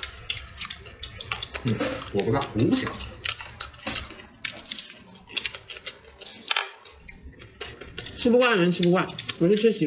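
Fingers crack and peel the scaly skin of snake fruit.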